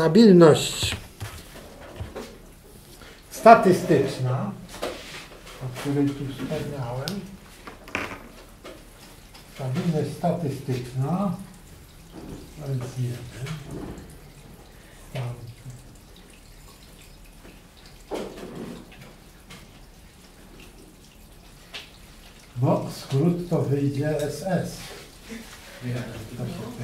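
A middle-aged man speaks calmly and haltingly nearby.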